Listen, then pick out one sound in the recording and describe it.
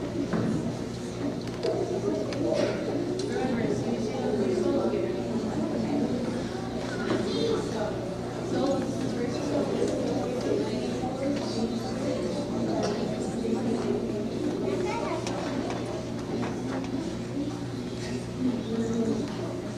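A choir of children sings together in a large echoing hall.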